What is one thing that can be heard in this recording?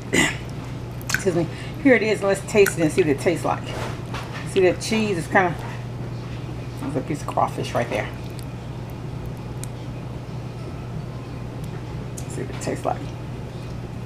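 A fork stirs through soft, sticky pasta.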